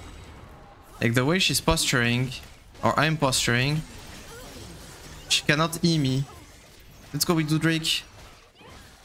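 A man talks loudly and with animation into a close microphone.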